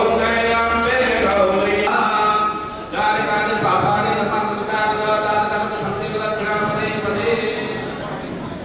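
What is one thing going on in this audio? A group of people chant together in unison.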